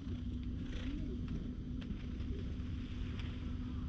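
A hand rubs softly against a cat's fur.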